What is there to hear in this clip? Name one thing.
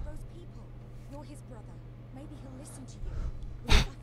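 A young woman speaks urgently in a low voice.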